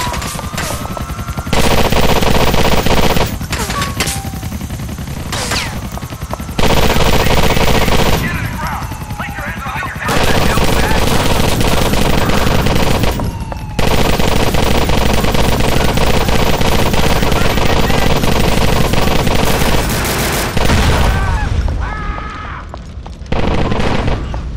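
Automatic gunfire rattles in rapid bursts.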